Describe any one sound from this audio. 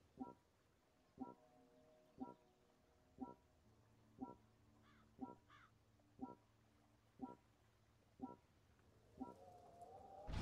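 A countdown timer beeps once every second.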